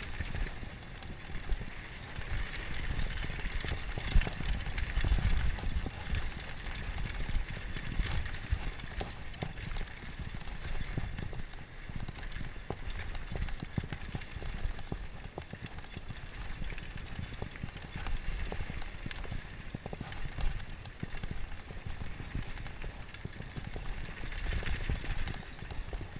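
Bike tyres roll and crunch over a dirt and rocky trail.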